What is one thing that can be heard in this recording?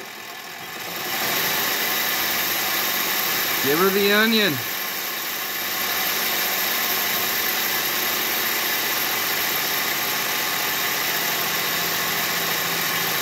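A small steam engine hisses and chuffs steadily.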